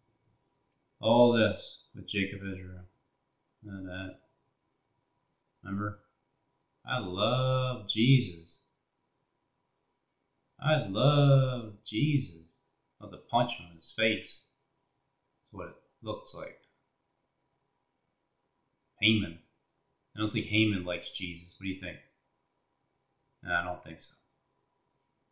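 A middle-aged man talks calmly into a headset microphone, in short bursts with pauses.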